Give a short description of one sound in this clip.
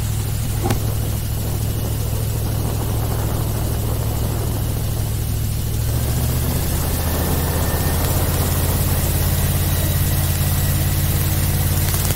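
Water splashes and hisses along the hull of a speeding boat.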